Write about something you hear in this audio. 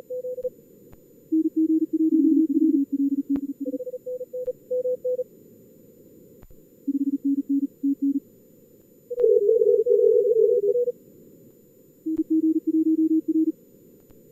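Morse code beeps come in quick bursts over a radio receiver.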